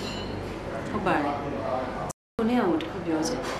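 A young woman speaks calmly nearby.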